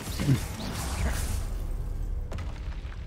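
A magic spell crackles and hums as it is cast.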